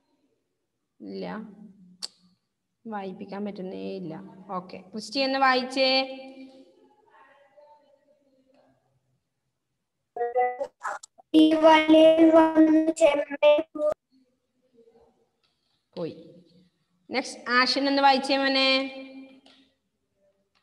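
Children speak in high voices over an online call.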